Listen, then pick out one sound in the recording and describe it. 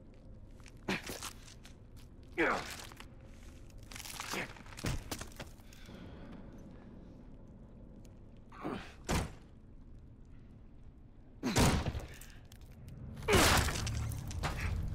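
Fleshy growths tear and squelch in sharp bursts.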